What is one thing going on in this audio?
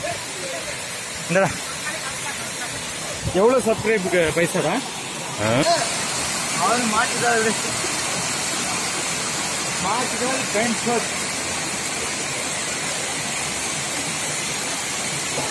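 A waterfall rushes and splashes steadily nearby.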